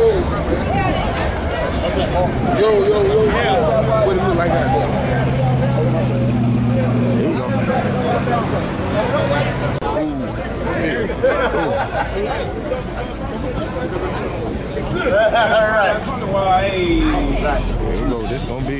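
A crowd of men and women chatter loudly nearby outdoors.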